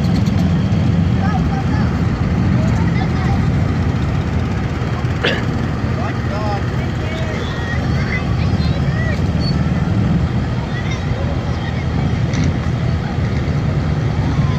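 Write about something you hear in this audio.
A large pickup truck rumbles slowly past, towing a trailer.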